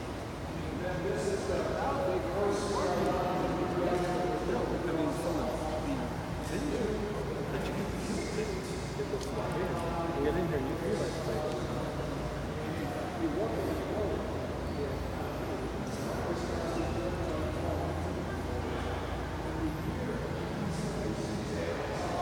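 Visitors chatter all around in a large echoing hall.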